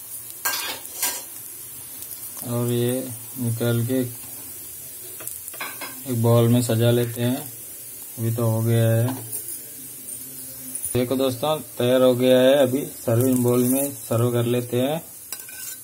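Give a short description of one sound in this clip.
Patties sizzle softly on a hot griddle.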